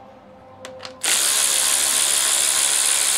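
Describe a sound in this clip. A cordless power drill whirs loudly.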